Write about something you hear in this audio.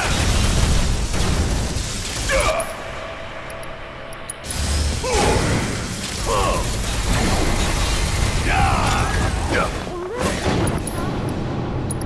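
A gun fires rapid bursts.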